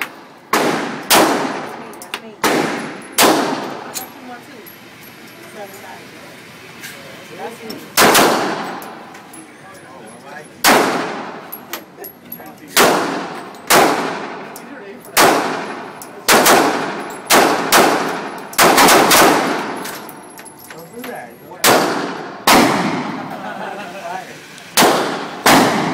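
Handgun shots bang loudly, one after another, echoing in a hard-walled room.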